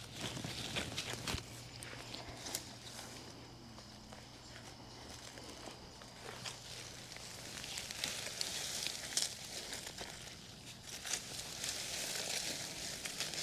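Leaves rustle and crackle close by.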